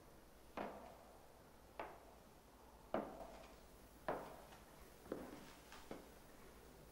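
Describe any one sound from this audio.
Boots thud on a hard floor in slow, even steps.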